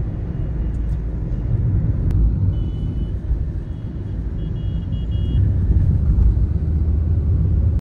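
Traffic rumbles steadily on a busy road.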